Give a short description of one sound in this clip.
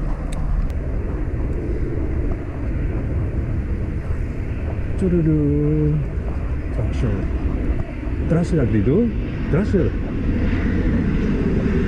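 Wind rushes loudly outdoors.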